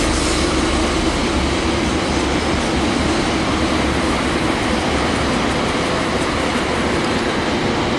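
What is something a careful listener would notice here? Cars drive by on a nearby road.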